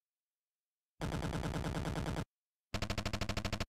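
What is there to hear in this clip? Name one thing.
Rapid electronic beeps chirp as game dialogue text scrolls.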